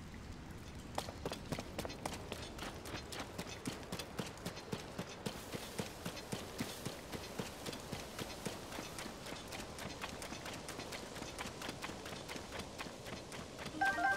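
Footsteps run quickly through grass.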